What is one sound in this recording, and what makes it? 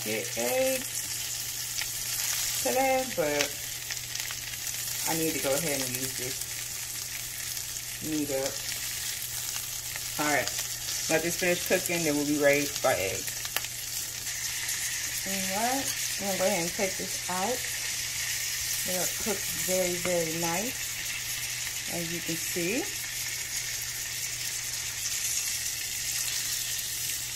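Sausages sizzle gently in a frying pan.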